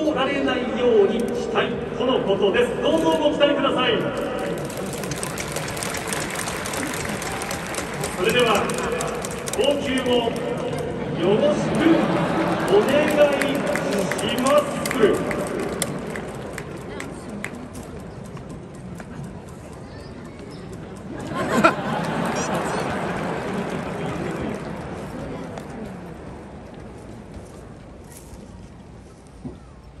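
A large crowd murmurs and cheers in a big echoing stadium.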